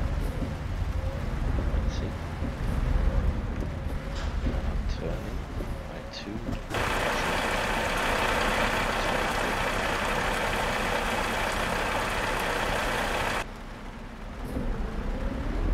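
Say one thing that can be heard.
Windshield wipers sweep across the glass.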